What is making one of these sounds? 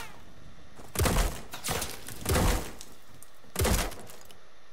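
A shotgun fires in a video game.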